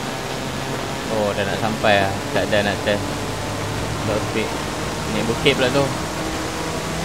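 A man speaks briefly with animation through a headset microphone.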